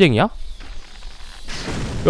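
A fireball whooshes past.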